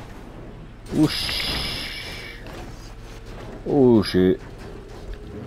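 A car slams down hard with a loud thud.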